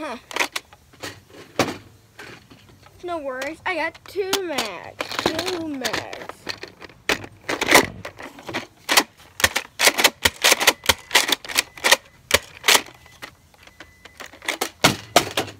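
A plastic toy blaster clicks and rattles.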